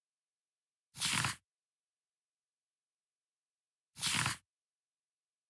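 A short soft whoosh sounds twice.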